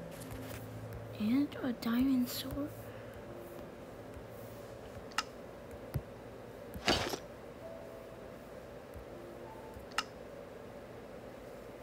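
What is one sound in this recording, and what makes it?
Short game clicks pop as items are moved around.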